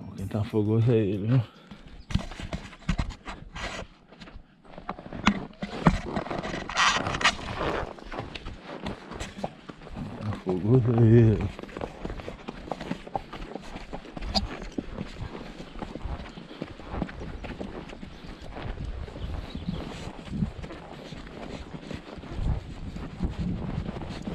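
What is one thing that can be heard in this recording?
A horse's hooves thud steadily on dry dirt.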